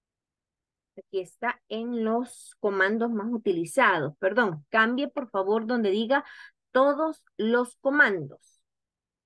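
A woman speaks calmly over a microphone in an online call.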